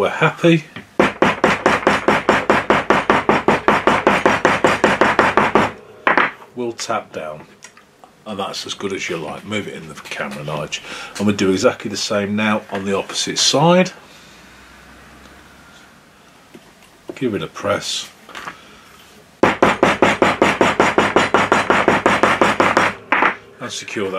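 A hammer taps rapidly on a metal punch.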